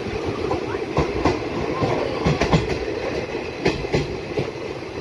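Metal wagons clank and bang as a freight train rolls past.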